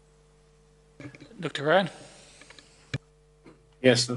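A man speaks into a microphone in a large room.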